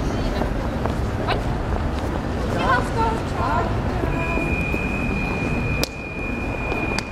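A tram hums as it waits at a stop.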